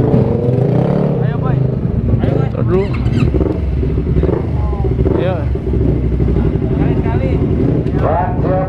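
A motorcycle engine idles close by with a steady rumble.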